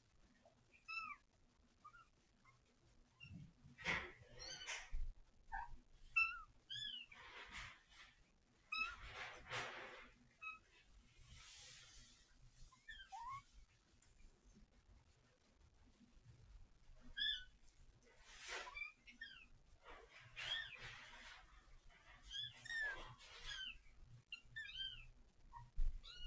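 Kittens mew in high, short cries.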